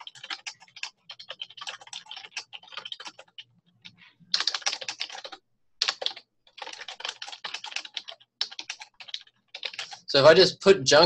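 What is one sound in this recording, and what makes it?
Keys clatter quickly on a computer keyboard.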